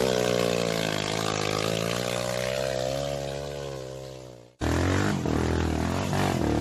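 A dirt bike engine hums and revs up close.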